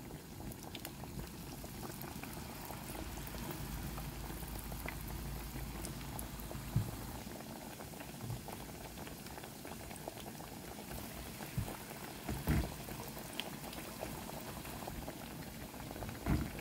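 Oil pops and spits now and then.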